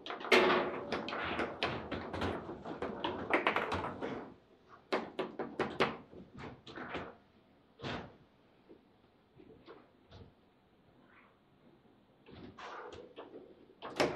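A hard plastic ball clacks sharply against rods and walls of a table football game.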